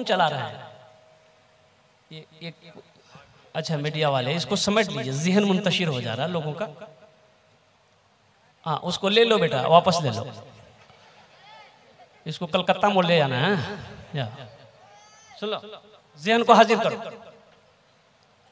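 A man preaches forcefully into a microphone, heard through loudspeakers in an echoing hall.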